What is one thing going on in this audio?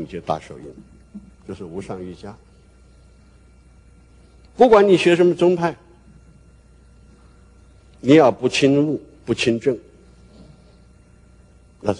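An older man speaks slowly and calmly through a microphone, in bursts with pauses.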